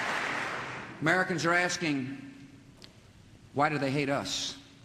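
A man speaks firmly through a microphone in a large hall.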